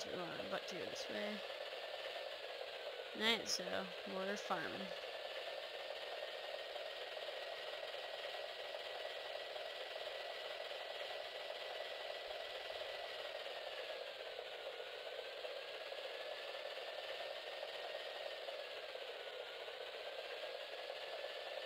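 A vehicle engine hums steadily, its pitch dipping and rising now and then.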